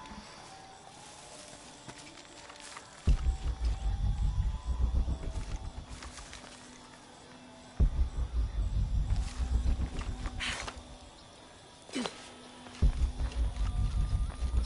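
Footsteps crunch on stone paving.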